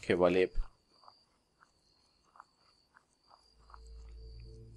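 Footsteps tread slowly over the ground.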